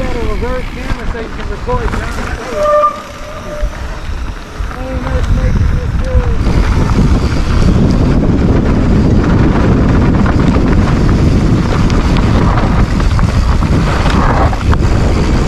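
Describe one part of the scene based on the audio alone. Bicycle tyres crunch and rattle over a dirt trail, growing louder as the bike speeds downhill.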